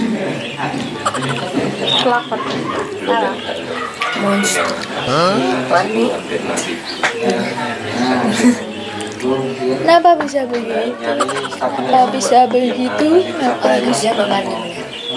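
Two young women talk and joke close by.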